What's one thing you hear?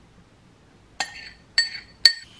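A spoon clinks against a glass.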